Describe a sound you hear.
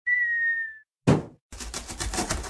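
A cardboard box drops and lands with a thud.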